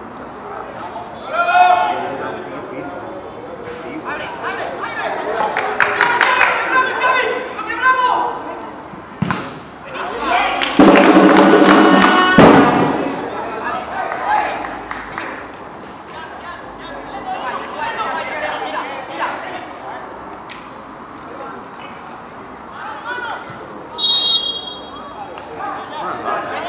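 Young men shout to each other on an open outdoor pitch.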